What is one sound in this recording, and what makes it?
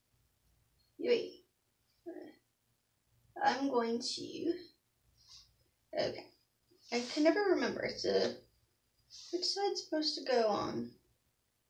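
A young woman talks calmly and close by, in short bursts.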